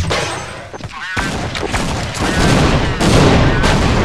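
A grenade explodes with a heavy boom.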